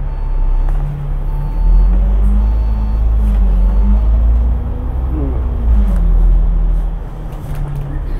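A bus engine roars louder as the bus pulls away.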